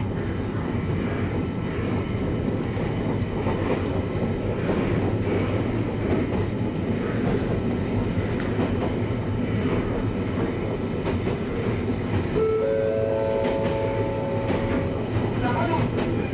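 A train rumbles steadily along the rails, heard from inside.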